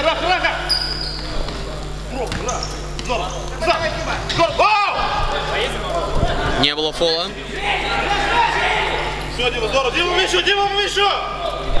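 Men shout to each other across a large echoing hall.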